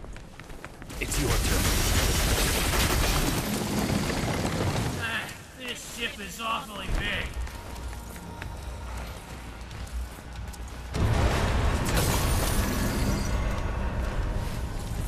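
Magical blasts crackle and boom during a fight.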